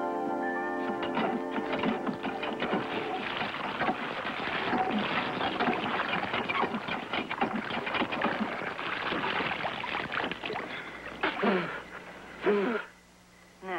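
Water gushes from a pump and splashes heavily.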